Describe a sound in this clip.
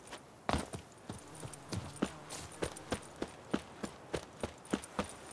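Footsteps thud steadily on grass and dirt.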